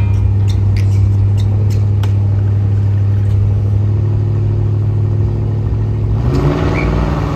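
Race car engines idle with a loud, steady rumble.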